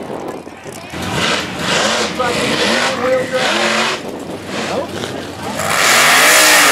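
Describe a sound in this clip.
A truck engine roars and revs hard, rising and falling in pitch.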